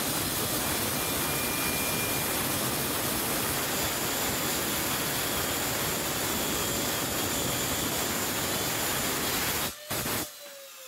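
A circular saw cuts through wood with a loud, steady whine.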